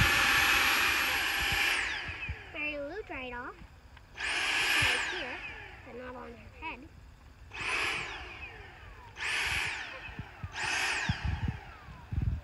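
A power auger whirs in short bursts, digging into soil.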